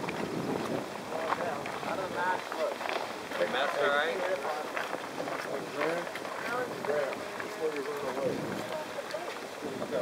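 Several men and women talk and call out to each other nearby outdoors.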